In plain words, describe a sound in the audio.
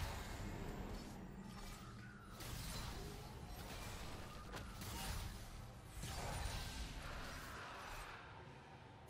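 Magic spells whoosh and crackle in a fantasy battle.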